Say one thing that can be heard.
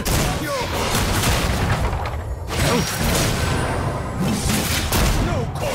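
Spell blasts and weapon hits crackle and clash in a fast battle.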